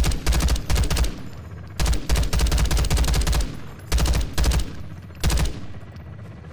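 Rapid gunfire bursts loudly, close by.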